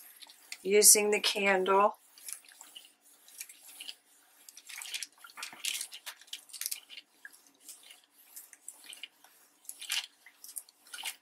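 An iron slides and rustles over paper.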